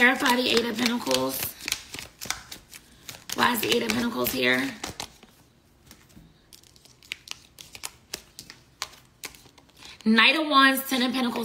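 Paper bills rustle and flick between hands.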